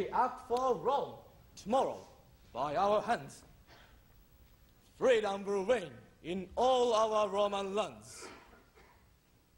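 A young man declaims loudly and dramatically on a stage, echoing in a large hall.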